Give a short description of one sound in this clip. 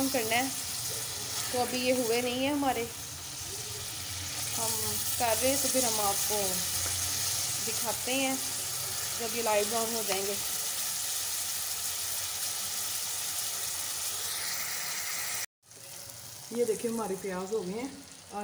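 Onions sizzle in hot oil in a pan.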